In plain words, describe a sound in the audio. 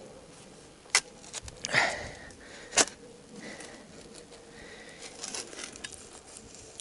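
A pickaxe strikes the hard ground with dull thuds.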